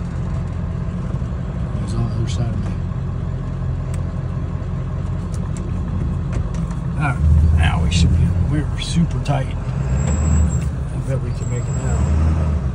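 A vehicle engine idles with a steady low rumble.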